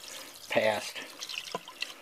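A spoon stirs in a pot of liquid.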